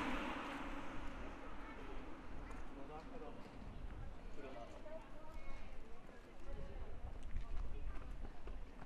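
Several adults chat at a distance outdoors.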